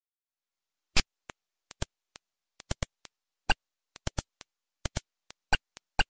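Short electronic clicks and blips patter quickly and unevenly.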